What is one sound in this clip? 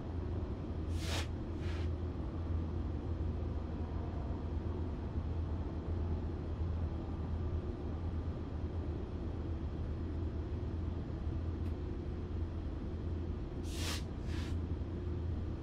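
Train wheels clack over rail joints in quick pairs.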